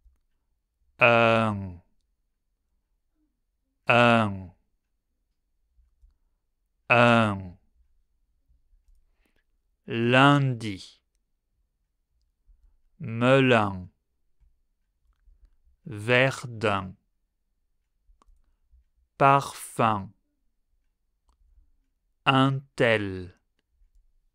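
A man says single words slowly and clearly into a close microphone, pausing between each.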